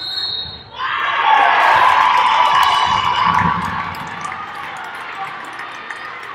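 A crowd in a large echoing arena cheers loudly.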